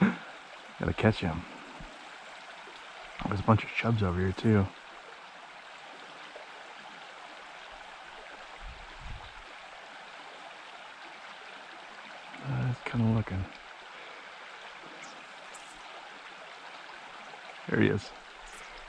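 A small stream trickles gently over stones.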